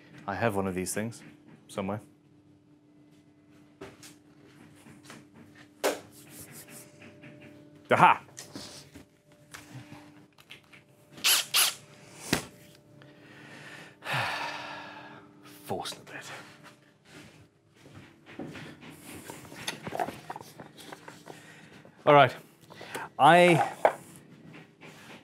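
A man speaks calmly and close up.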